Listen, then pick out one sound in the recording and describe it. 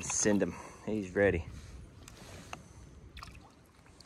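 A fish splashes briefly in the water as it is released.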